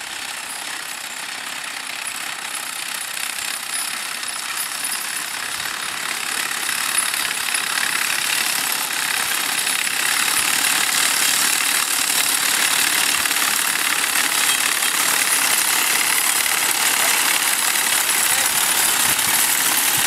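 A horse-drawn mower clatters steadily as it cuts dry grass.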